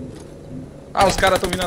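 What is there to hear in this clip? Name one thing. A young man speaks with animation into a microphone, close up.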